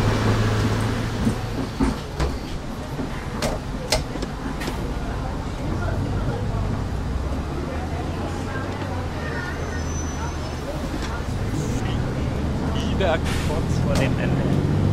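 A bus engine hums low and steady.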